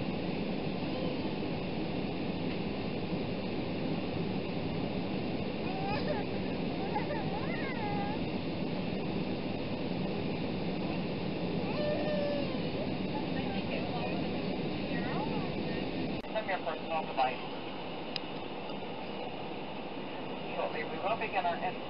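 A jet engine roars steadily from inside an airliner cabin.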